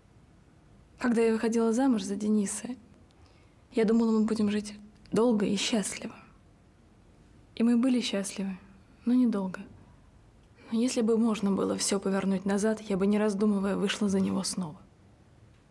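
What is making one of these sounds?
A young woman speaks calmly and close by, in short bursts.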